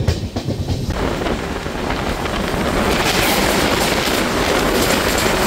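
A passing train rushes by close with a loud roar.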